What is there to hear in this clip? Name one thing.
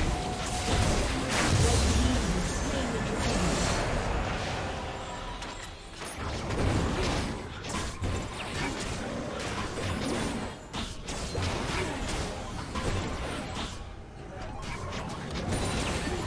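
Fantasy spell effects blast and crackle in a video game battle.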